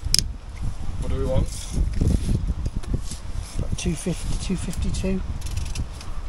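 A middle-aged man talks calmly up close.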